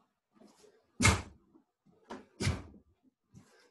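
A karate uniform snaps with quick strikes.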